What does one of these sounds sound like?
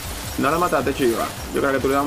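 A magic spell bursts with a bright shimmering crackle.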